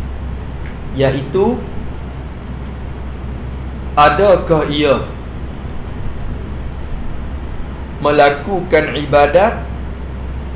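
A man speaks in short phrases with pauses, heard through a microphone.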